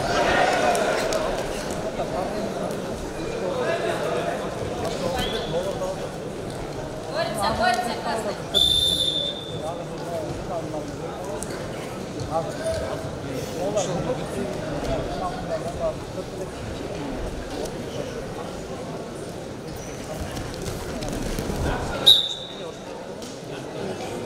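A large indoor crowd murmurs and cheers in an echoing arena.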